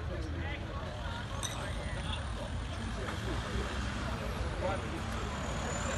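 A crowd of men murmurs and talks nearby outdoors.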